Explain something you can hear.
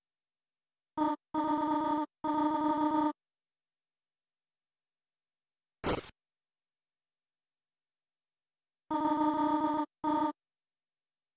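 Short pitched blips from a video game chirp as a line of dialogue text prints out.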